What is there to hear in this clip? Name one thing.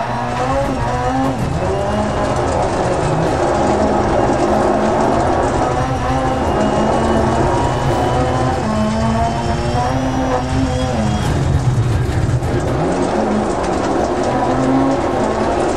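Tyres crunch and hiss over loose gravel.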